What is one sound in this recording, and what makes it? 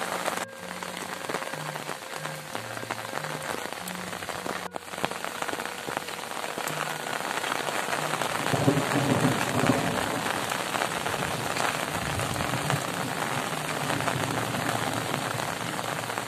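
Steady rain falls and patters outdoors.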